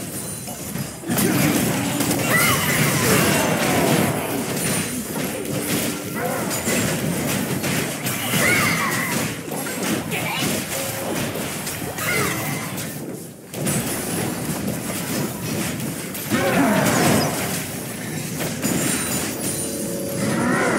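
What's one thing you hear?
Game spell effects crackle and burst in a busy fight.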